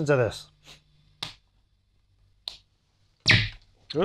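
An amplifier switch clicks.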